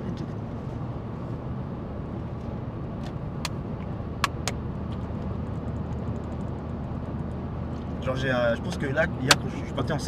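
A car engine hums steadily with road noise inside the cabin.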